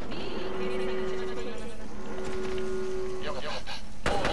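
An alert chime sounds with a steady tone.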